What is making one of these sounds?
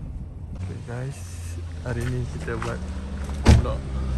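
A car door clicks open.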